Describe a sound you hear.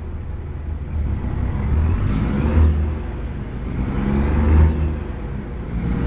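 A truck engine revs up as the truck pulls away.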